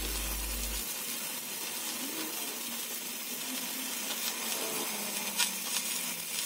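Sparks crackle and hiss steadily from a burning rod.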